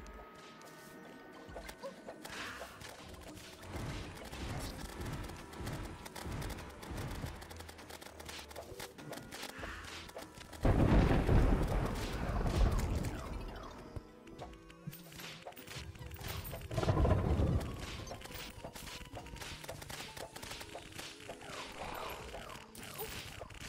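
Game music plays throughout.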